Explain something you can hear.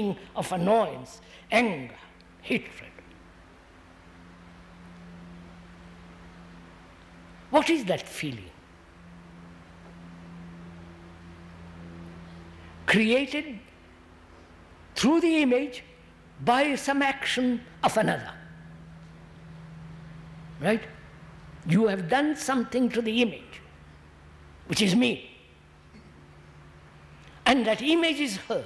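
An elderly man speaks slowly and thoughtfully into a microphone, with long pauses.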